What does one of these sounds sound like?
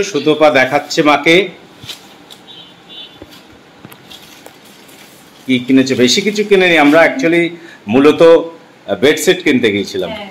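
A paper bag rustles as it is handled.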